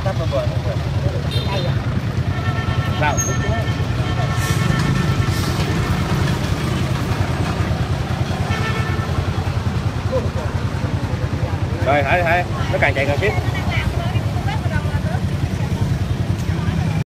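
A crowd chatters steadily in the background.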